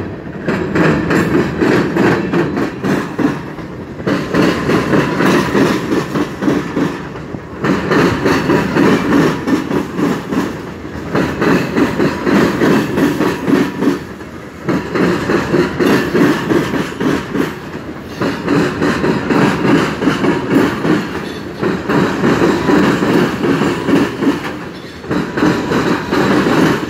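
Freight cars rumble and clatter along the rails close by.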